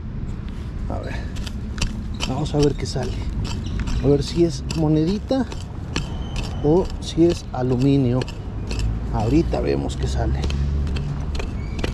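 A hand tool digs and scrapes into soil.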